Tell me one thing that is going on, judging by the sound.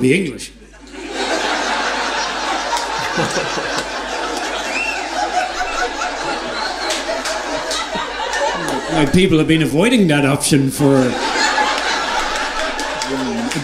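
A large crowd laughs and applauds loudly.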